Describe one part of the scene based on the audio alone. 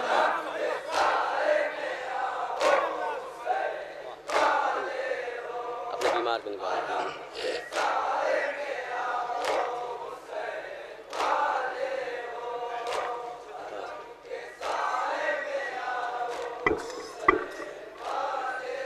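Men beat their chests in a slow, steady rhythm.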